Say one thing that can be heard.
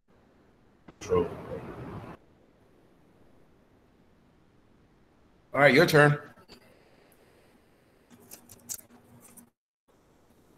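A man speaks briefly through an online call.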